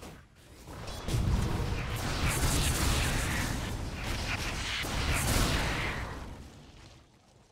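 Magic spells burst and crackle in a fight between game characters.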